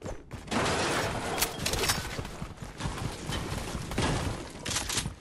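Footsteps thud quickly up stairs.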